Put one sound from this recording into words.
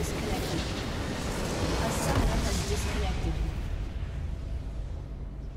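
A game explosion booms with a loud rumbling blast that slowly fades.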